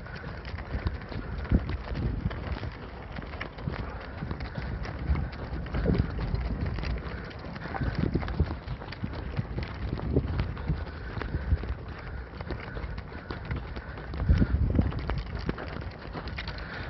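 Horse hooves thud on packed snow at a trot.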